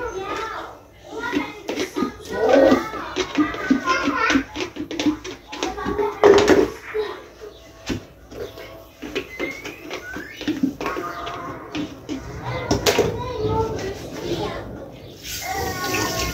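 A plastic bottle is scrubbed and rubbed with crinkling and knocking.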